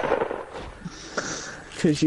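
A pickaxe swings and strikes with a sharp whoosh.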